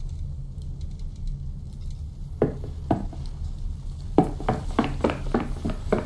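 Footsteps thud and creak on wooden boards.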